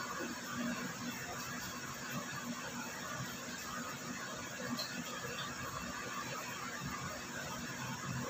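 A nail file scrapes softly against a fingernail.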